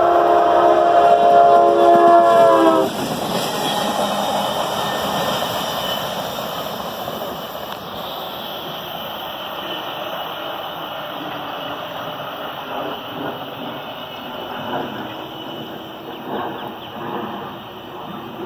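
A locomotive rumbles past on the tracks and slowly fades into the distance.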